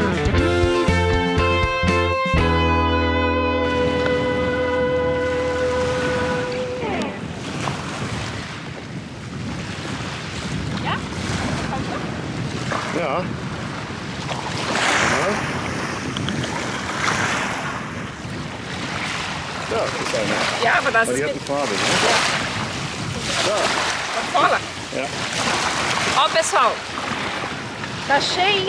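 Small waves lap and wash against a pebbly shore.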